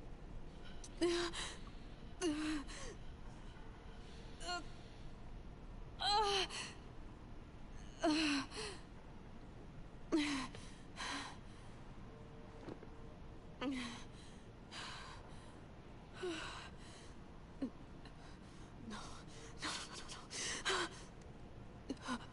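A young woman speaks quietly and haltingly, close by.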